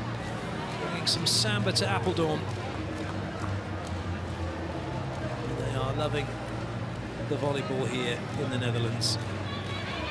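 Clappers bang rhythmically in a crowd.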